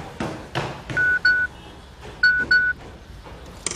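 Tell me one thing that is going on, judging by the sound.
A mobile phone beeps as its keys are pressed.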